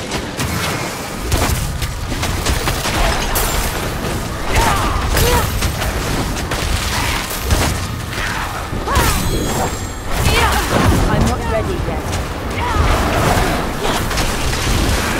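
Weapon blows thud and clash in rapid bursts.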